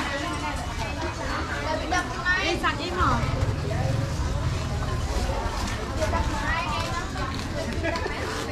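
Voices of a busy outdoor crowd chatter nearby.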